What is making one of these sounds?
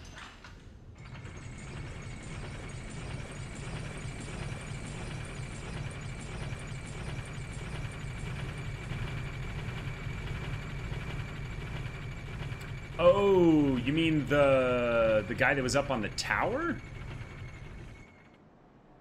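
A heavy lift rumbles steadily as it moves.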